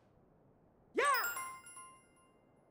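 A cartoon character lets out a short springy jump sound.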